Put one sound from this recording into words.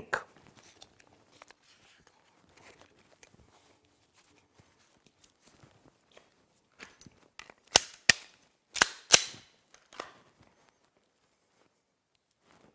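Metal clicks as a pistol is handled and reloaded.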